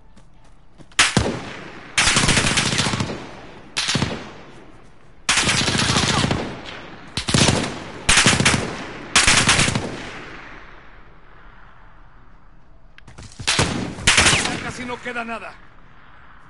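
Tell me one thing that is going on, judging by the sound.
Gunfire rattles in loud bursts with a ringing echo.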